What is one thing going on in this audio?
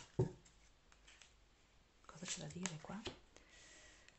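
A card is set down on a table.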